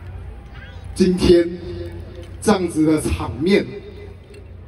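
A man speaks calmly into a microphone over loudspeakers in a large echoing hall.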